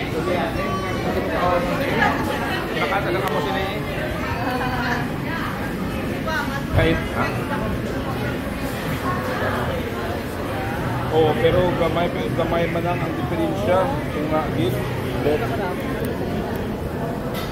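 Many people chatter in a busy indoor crowd.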